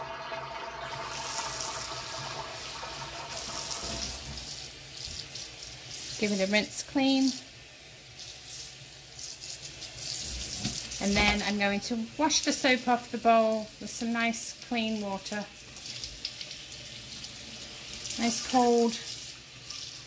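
Water pours from a tap into a sink.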